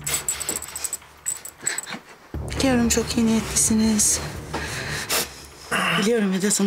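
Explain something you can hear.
A woman speaks softly and closely.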